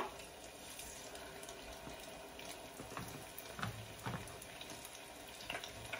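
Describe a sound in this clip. A metal spoon scrapes and clinks against a pot.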